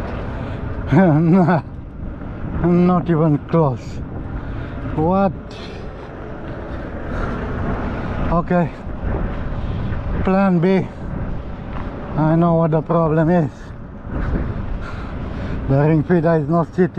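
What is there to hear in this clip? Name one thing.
A man talks calmly close by, in short bursts.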